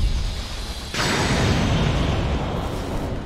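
A sword swishes and clangs against armour.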